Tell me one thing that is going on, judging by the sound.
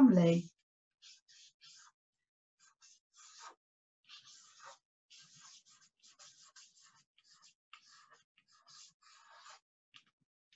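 A marker squeaks faintly as it writes on card.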